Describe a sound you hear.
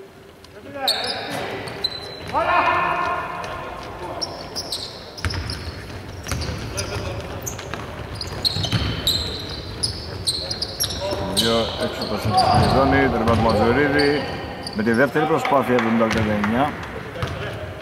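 Young men shout to one another across an echoing hall.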